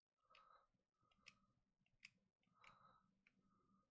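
Soft electronic blips sound as a game menu cursor moves.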